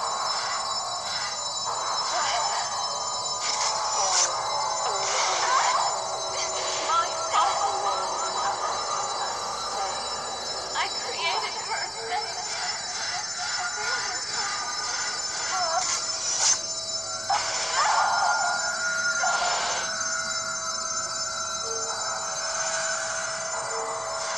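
Electronic game music plays steadily from a small speaker.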